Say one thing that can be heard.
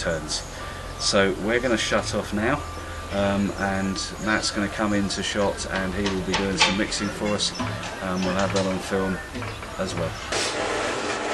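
A middle-aged man talks close by, with animation.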